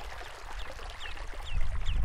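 A river flows and ripples over shallow stones.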